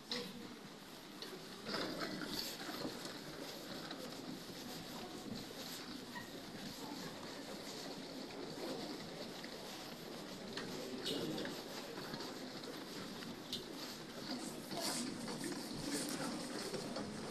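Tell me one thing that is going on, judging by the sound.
The hum and murmur of a large indoor hall echo all around.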